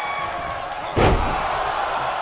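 A body slams hard onto a wrestling ring mat with a heavy thud.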